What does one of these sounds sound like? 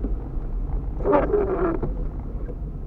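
A windshield wiper squeaks as it sweeps across the glass.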